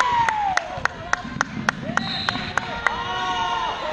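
A basketball bounces rhythmically on a wooden floor in a large echoing gym.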